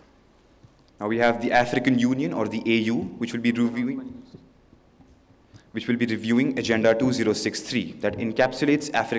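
A man speaks into a microphone over loudspeakers in a large echoing hall.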